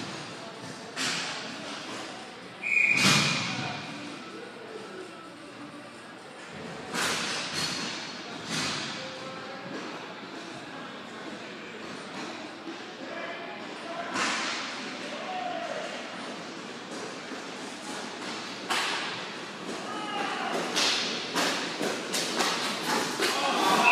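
Players' skate wheels roll and scrape on the rink floor.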